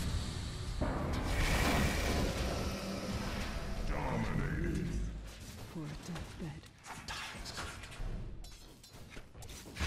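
Video game battle effects clash and crackle with magic blasts.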